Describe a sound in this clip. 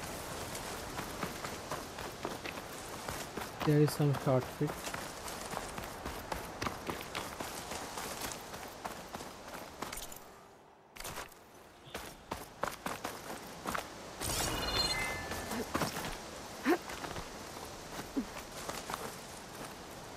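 Footsteps rustle and crunch quickly through dry grass and over rocky ground.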